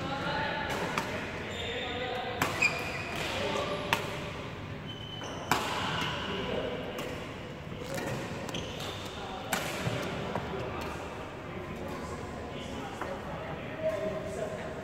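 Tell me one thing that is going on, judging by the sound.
Badminton rackets hit a shuttlecock with sharp pops in a large echoing hall.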